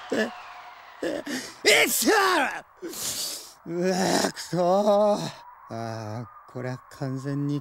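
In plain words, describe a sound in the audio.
A young man groans and speaks with frustration, close by.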